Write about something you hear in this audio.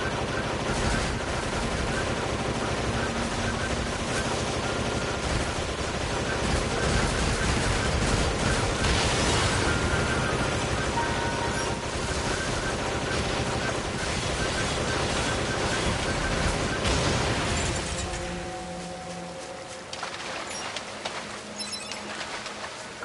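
Swords clash and slash in a fast fight.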